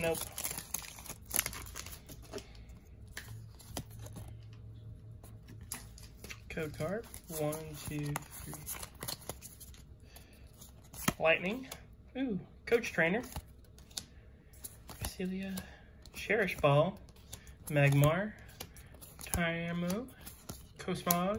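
Trading cards rustle and flick as hands shuffle through them.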